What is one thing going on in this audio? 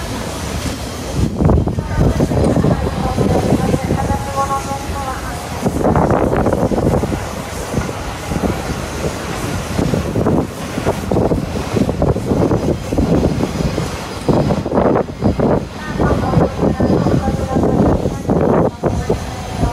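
A steam locomotive chuffs heavily, puffing out steam.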